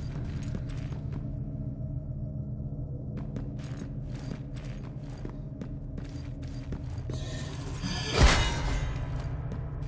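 Footsteps clank on metal floors.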